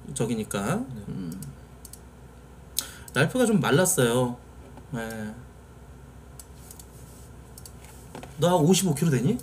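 A man speaks with animation into a microphone close by.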